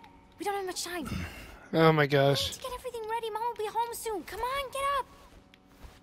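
A young woman urges someone with animation, close by.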